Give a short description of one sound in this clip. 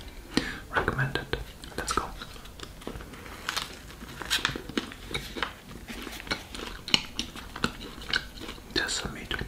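Soft tortilla crinkles in a man's hands.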